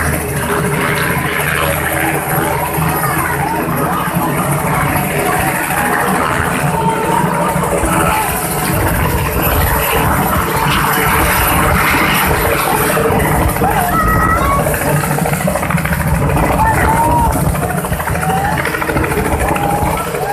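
A crowd of people chatters and shouts nearby.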